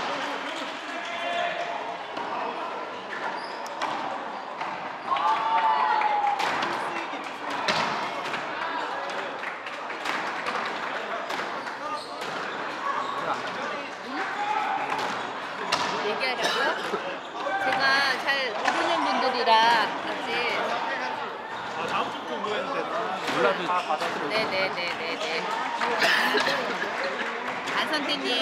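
Shoes squeak on a wooden court floor.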